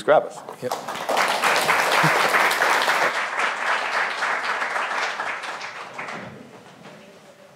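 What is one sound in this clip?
An audience applauds in a large hall, then the clapping fades away.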